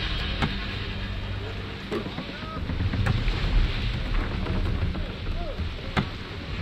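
Waves wash and splash against a sailing ship's hull.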